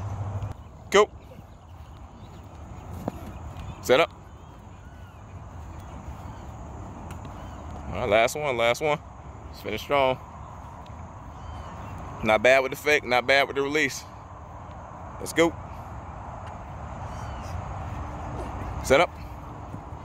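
A ball smacks into a baseball glove.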